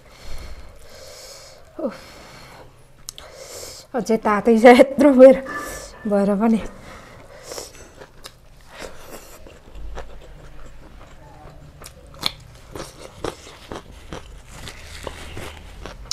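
A woman chews food wetly close by.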